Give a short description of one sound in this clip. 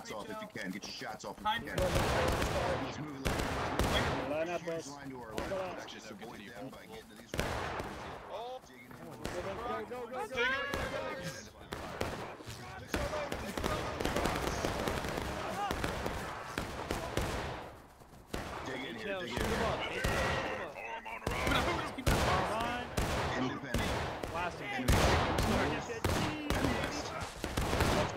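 Gunfire pops and booms in the distance.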